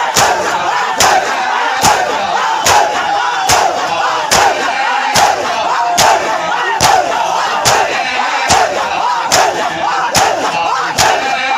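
A crowd of men chant loudly together.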